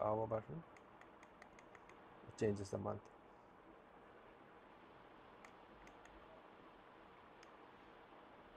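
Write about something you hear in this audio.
Small plastic buttons on a clock click now and then.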